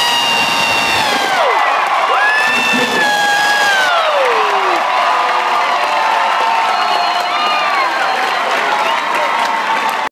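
A band plays live music loudly through loudspeakers in a large echoing hall.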